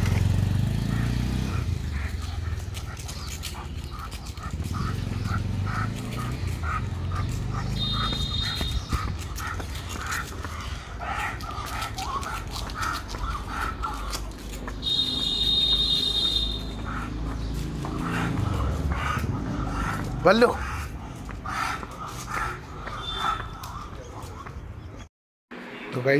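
Footsteps scuff along pavement.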